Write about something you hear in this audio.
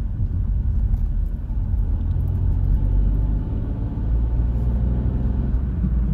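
Tyres roll along the road with a low rumble.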